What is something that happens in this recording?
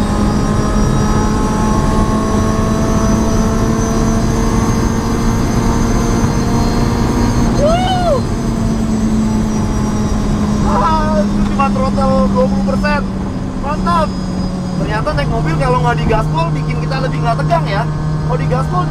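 A car engine drones steadily at speed, dropping in pitch near the end.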